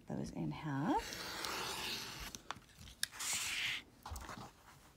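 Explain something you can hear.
A rotary cutter slices through fabric with a soft rasp.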